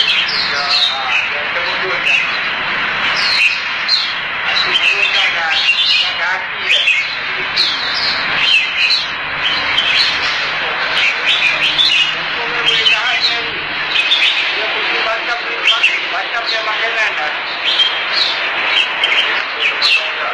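Many caged songbirds chirp and twitter busily throughout.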